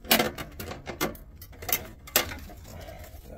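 Hands knock and clatter against a metal case.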